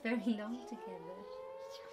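A woman speaks softly and cheerfully to a small child close by.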